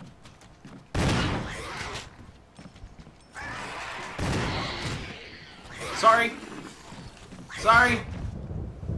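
A zombie groans and snarls up close.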